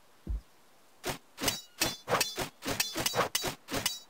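A thrown shuriken whooshes sharply, again and again in quick bursts.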